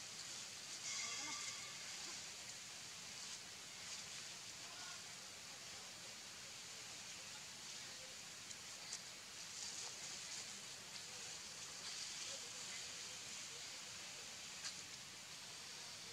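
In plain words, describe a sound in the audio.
Young monkeys scamper over dry leaves and dirt.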